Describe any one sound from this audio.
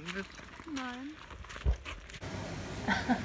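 A woman speaks close by outdoors.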